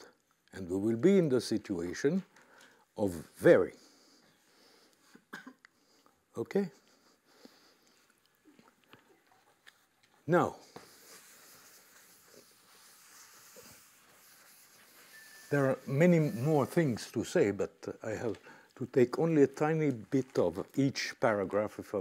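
An elderly man lectures calmly and with pauses, heard through a microphone.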